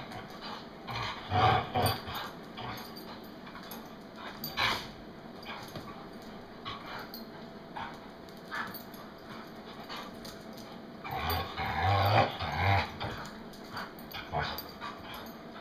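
Dogs growl and snarl as they play-fight close by.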